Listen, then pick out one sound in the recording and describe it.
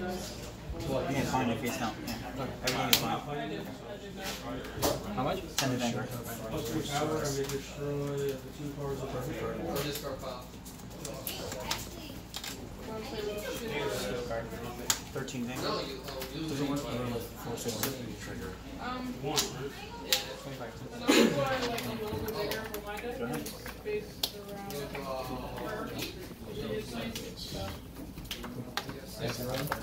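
Playing cards tap and slide on a table.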